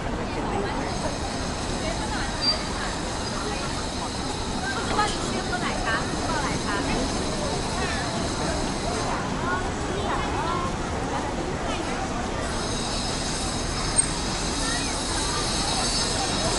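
A crowd of people chatters all around outdoors.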